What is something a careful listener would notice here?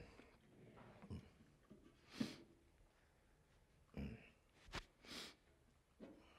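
A man sniffs and breathes heavily while crying.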